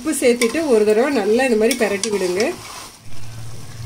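A metal spoon stirs and scrapes chicken around in a pot.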